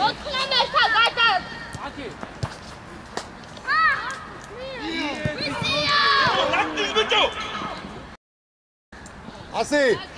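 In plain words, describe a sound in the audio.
Children shout and call out across an open outdoor pitch.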